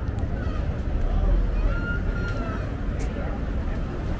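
A man whistles a tune nearby.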